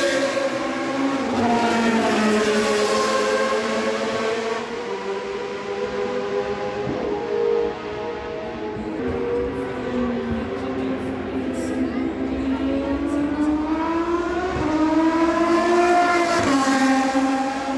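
Racing car engines scream past with a high whine that rises and falls.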